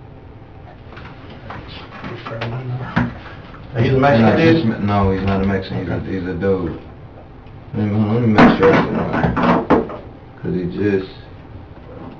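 A man talks in a low voice, heard through a distant room microphone.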